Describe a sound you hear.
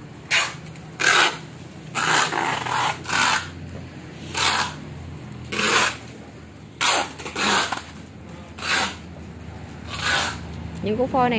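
Plastic wrap rustles and crinkles close by.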